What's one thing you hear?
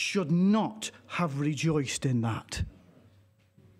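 A man speaks with emphasis through a microphone.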